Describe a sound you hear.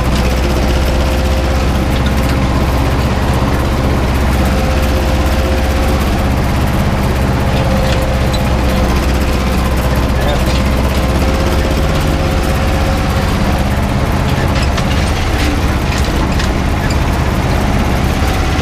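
A cultivator rattles and clatters through the soil.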